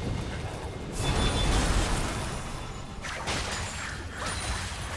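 Magic spells crackle and boom in a fast video game battle.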